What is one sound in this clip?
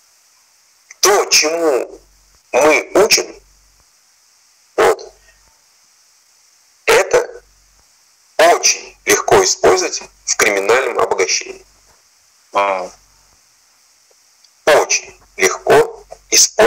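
A man speaks with animation over an online call, in short bursts with pauses.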